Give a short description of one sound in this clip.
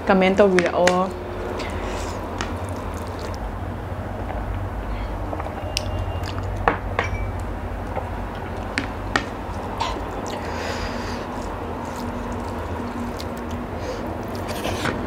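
A young woman chews and smacks her lips while eating.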